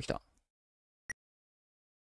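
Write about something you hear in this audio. A short electronic blip sounds as a menu opens.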